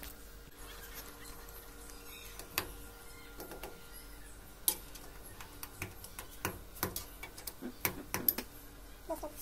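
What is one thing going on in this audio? Small metal parts click and tap against a wall fitting.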